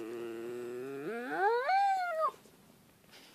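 A puppy howls in a long whine that rises and breaks off.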